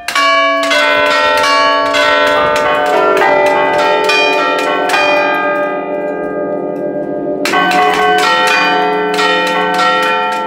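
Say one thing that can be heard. Bells ring out loudly in a rapid melody, the notes ringing on and overlapping.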